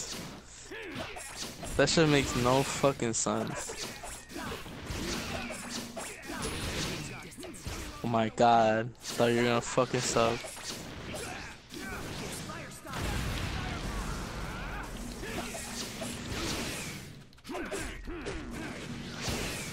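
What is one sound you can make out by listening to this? Fighters' blows land with sharp thuds and whooshes.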